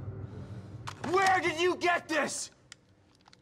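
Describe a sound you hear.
A man speaks tensely and angrily, close by.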